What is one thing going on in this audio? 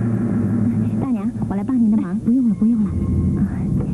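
A young woman asks a question softly, close by.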